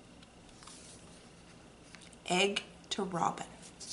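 A paper book cover is turned over with a soft rustle.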